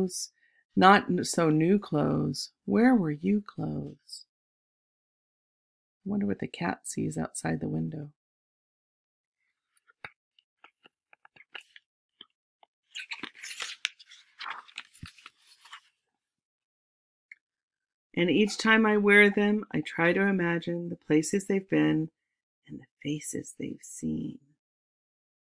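A woman reads aloud calmly and close by.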